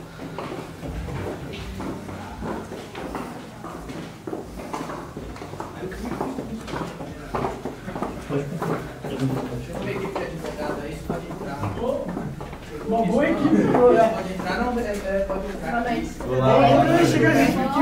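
Footsteps walk along a hallway.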